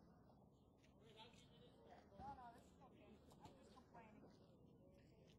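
Men talk at a distance outdoors.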